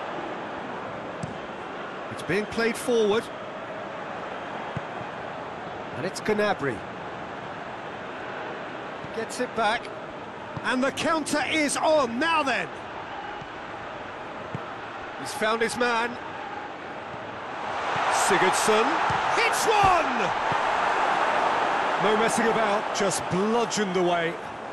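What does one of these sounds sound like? A large stadium crowd roars steadily and swells louder.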